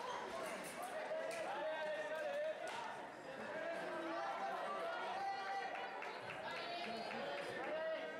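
Fencers' shoes squeak and scuff on a hard floor.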